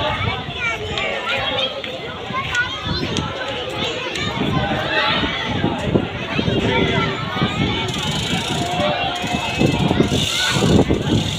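A crowd of men talks and calls out loudly outdoors in the street.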